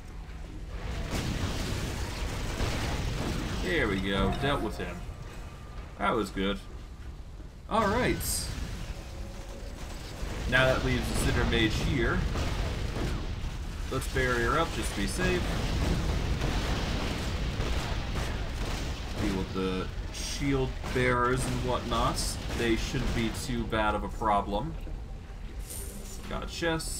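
Magic spells crackle and whoosh in a video game battle.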